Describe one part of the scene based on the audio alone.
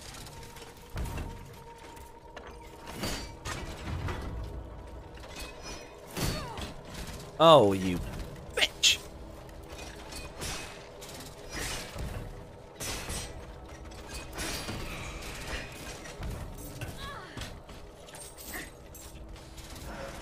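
Metal weapons clang and strike in a fight.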